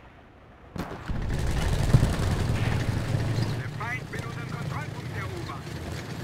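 A tank engine rumbles deeply nearby.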